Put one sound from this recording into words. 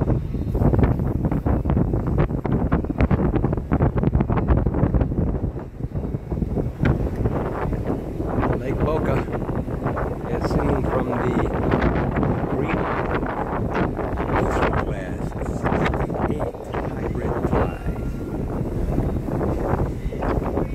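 Wind buffets loudly outdoors, rumbling throughout.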